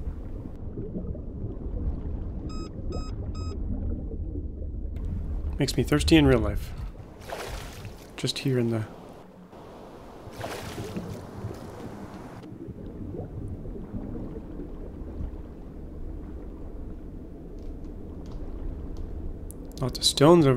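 Muffled underwater rumble surrounds a diver.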